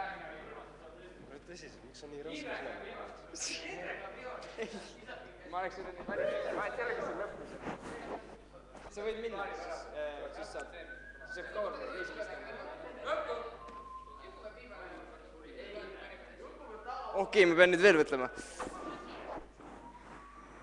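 Young men and women talk and chatter nearby in a room with a slight echo.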